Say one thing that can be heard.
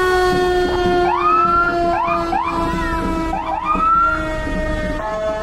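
A fire engine horn blasts in short bursts.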